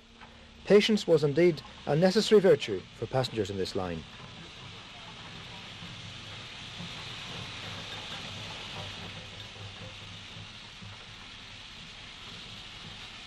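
A steam locomotive chugs slowly along the track.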